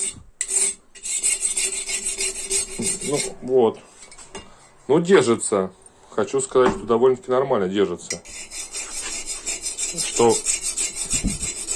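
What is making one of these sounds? A metal point scratches back and forth across a steel bar.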